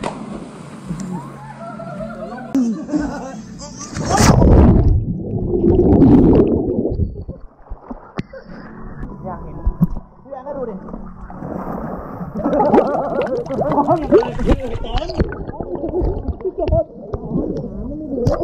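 Water sloshes and churns around swimmers.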